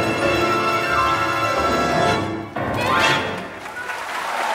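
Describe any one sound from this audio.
An orchestra with piano plays a loud closing chord.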